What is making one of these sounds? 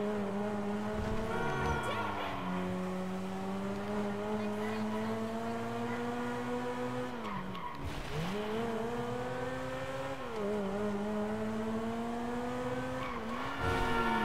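A sports car engine roars and revs, rising and dropping in pitch as the gears shift.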